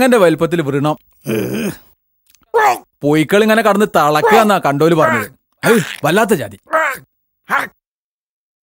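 A man speaks with feeling, close by.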